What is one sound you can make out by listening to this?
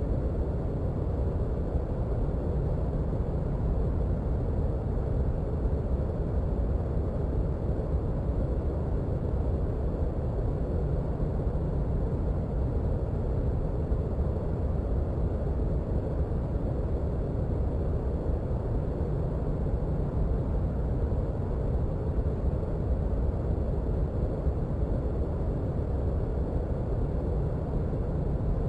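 A jet engine idles with a steady low rumble.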